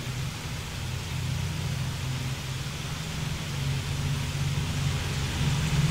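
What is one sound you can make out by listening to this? A propeller plane's engine drones steadily with a low rumble.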